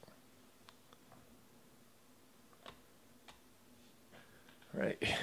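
Trading cards tap and rustle softly as they are handled.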